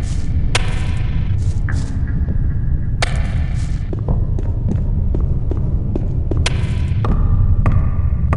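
Footsteps crunch on rough ground.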